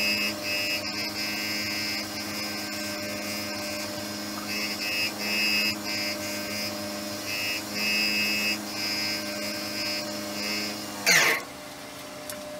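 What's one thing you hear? A wood lathe hums steadily as it spins, then winds down.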